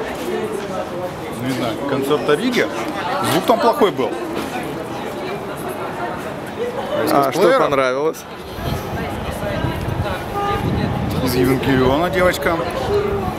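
A young man talks casually close by, outdoors.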